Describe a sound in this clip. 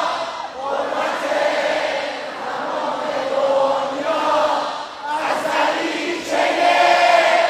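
A singer's voice booms through loudspeakers.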